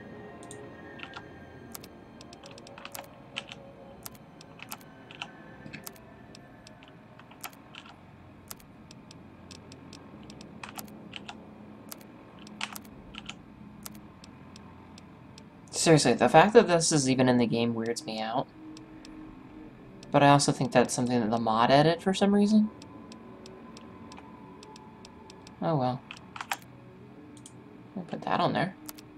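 Soft electronic clicks tick rapidly as a menu list scrolls.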